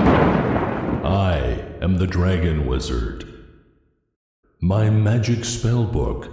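A man speaks in a deep, theatrical voice close by.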